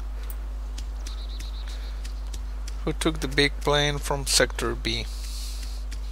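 Footsteps run through grass.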